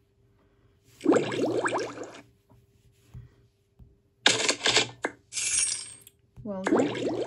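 Cheerful game sound effects and jingles play from a tablet speaker.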